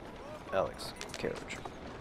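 A horse's hooves clop on a cobbled street.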